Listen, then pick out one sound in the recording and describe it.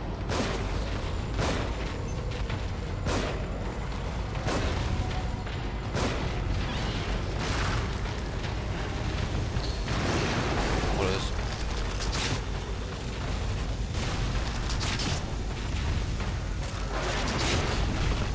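Gunshots crack in quick succession.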